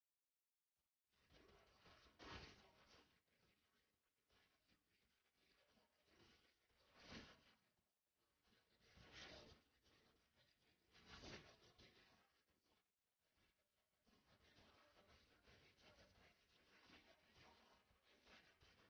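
A young woman sings into a microphone.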